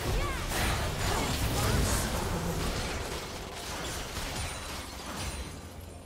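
Game spells burst and clash in a hectic fight.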